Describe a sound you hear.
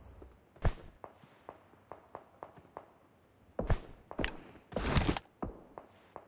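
Gunshots crack in a game, in short loud bursts.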